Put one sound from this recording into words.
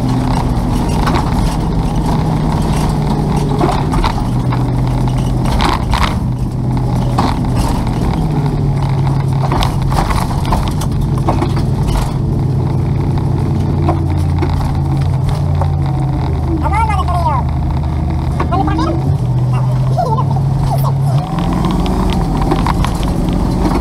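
Tyres rumble over a bumpy road.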